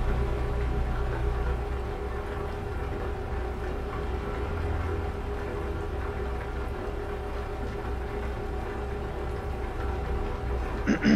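Tyres roll with a steady rumble on the road.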